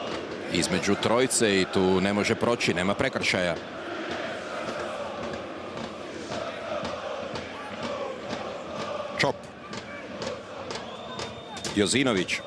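A football crowd murmurs and chants in a large stadium.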